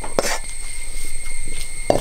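A spoon scrapes and rustles through dry crumbs on a clay plate.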